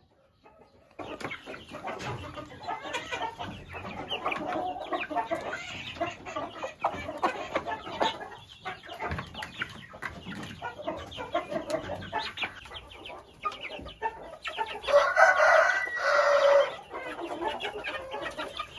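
Young chickens cluck and peep busily.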